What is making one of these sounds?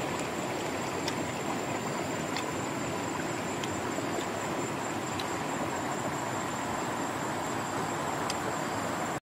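A stream rushes steadily in the background.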